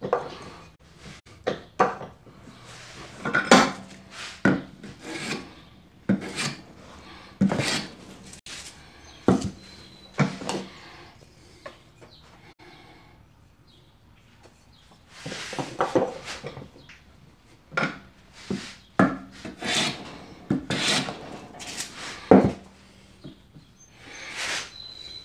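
Wooden blocks and tools knock down onto a wooden bench.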